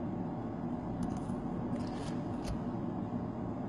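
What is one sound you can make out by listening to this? Stiff paper cards slide and rustle as they are shuffled by hand.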